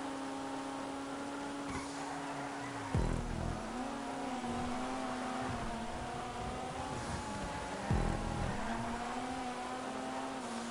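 A car engine roars steadily at high revs, dipping briefly at gear changes.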